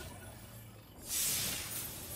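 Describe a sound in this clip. A second chest opens with a bright shimmering burst.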